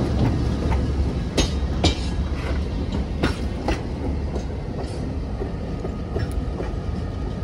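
Train wheels clack on the rails as the cars roll by.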